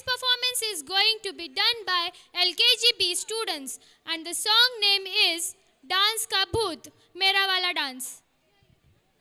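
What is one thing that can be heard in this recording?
A group of children sings together on a stage.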